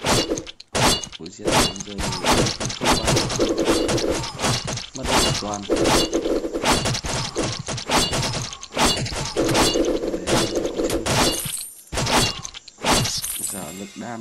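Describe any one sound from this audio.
Mobile game sound effects of arrows firing and hitting enemies crackle in quick succession.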